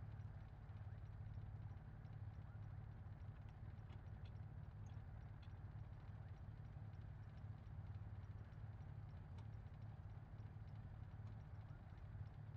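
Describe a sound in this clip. A small airplane's engine drones steadily from inside the cabin.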